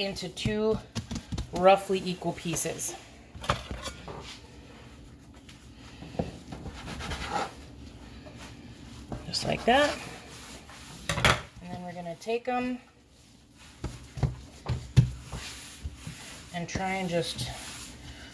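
Hands knead and pat soft dough.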